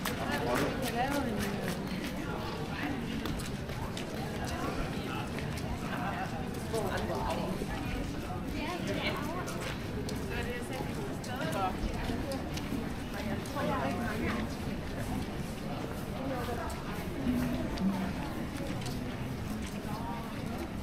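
Footsteps tap on wet paving stones.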